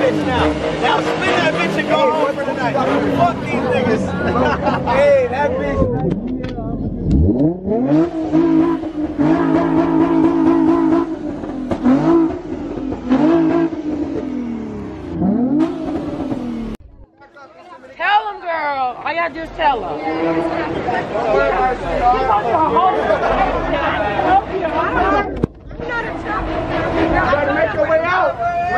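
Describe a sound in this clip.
A crowd of young people talks and shouts nearby.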